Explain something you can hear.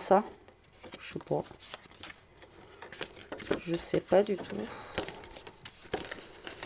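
Sheets of card rustle and flap as they are handled.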